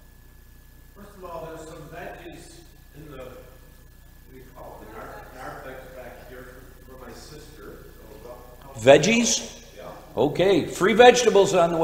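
An older man speaks calmly into a microphone, growing louder and more emphatic toward the end.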